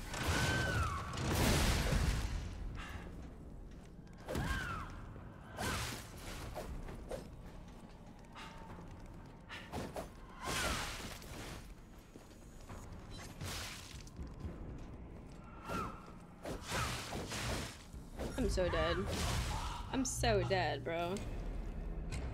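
Swords clash and ring in quick bursts.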